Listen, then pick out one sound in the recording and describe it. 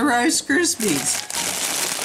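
An older woman speaks close by with animation.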